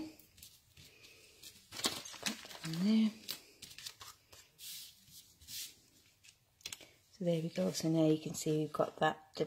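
Paper rustles and slides as hands move it around.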